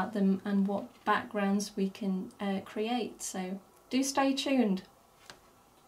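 A middle-aged woman speaks warmly and close to a microphone.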